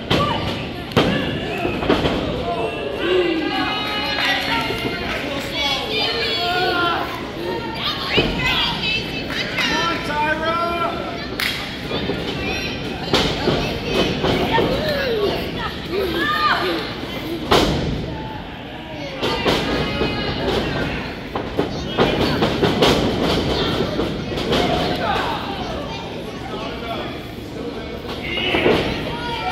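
Bodies thud onto a wrestling ring's canvas.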